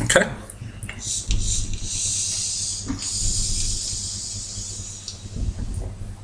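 A man inhales sharply from a vape pen with a hiss.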